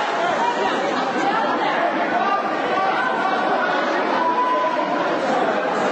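A woman shouts loudly over a crowd.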